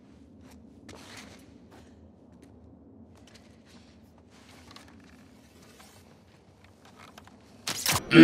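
A bowstring creaks as it is drawn back.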